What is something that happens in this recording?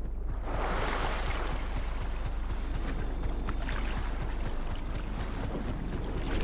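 Water splashes as a swimmer paddles.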